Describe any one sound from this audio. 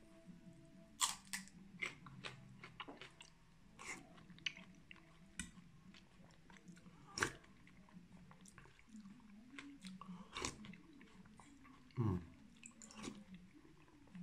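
A man slurps soup loudly from a spoon, close by.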